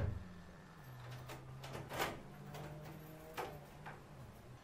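A door lock clicks and rattles.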